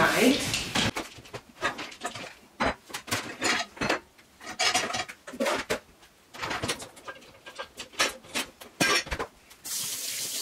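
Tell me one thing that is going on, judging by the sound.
Plastic bowls clatter and knock on a countertop.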